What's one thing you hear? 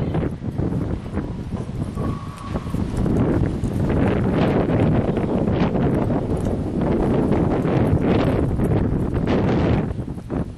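A horse gallops, its hooves thudding on soft dirt.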